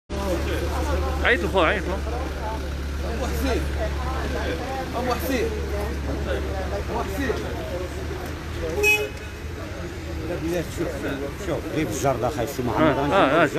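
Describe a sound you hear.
A young man speaks agitatedly close to a microphone outdoors.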